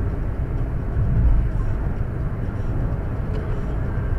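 A truck passes close by with a loud rush.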